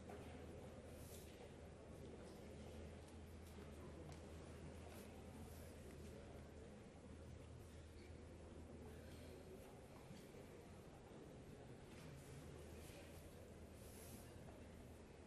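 Papers rustle as pages are handled.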